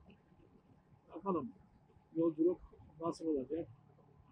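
A man talks calmly, close and muffled through a microphone.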